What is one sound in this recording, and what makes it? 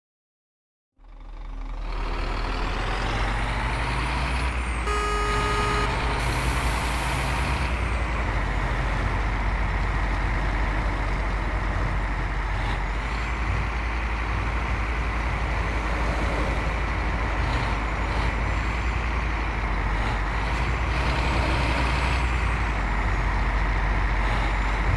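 A bus engine rumbles steadily as it drives along a winding road.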